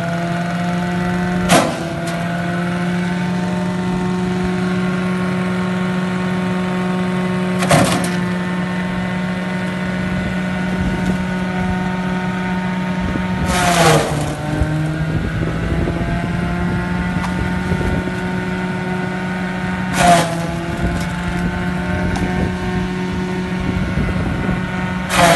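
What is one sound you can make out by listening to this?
An electric motor hums steadily as a shredding machine runs.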